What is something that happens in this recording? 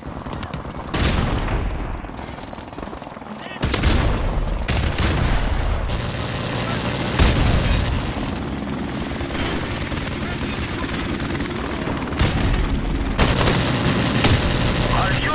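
Rifle shots crack in short bursts.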